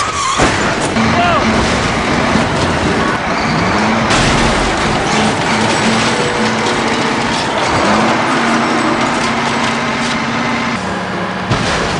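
A truck engine roars as the truck drives past.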